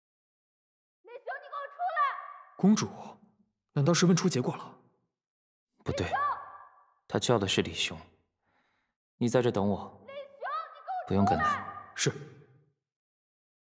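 A second young man calls out loudly, echoing in a large cave.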